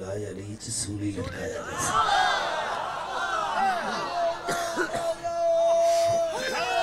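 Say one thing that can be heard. A middle-aged man recites loudly and with emotion into a microphone, heard through loudspeakers outdoors.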